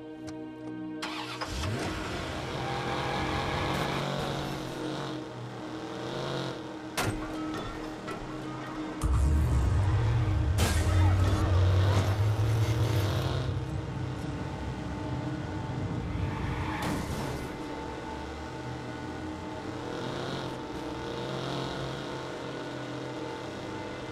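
A car engine roars as it accelerates.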